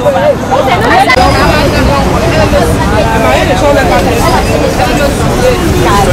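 A crowd of women sings and chants loudly together, close by.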